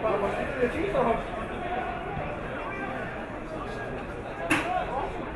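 A crowd of spectators murmurs and calls out in an open outdoor stadium.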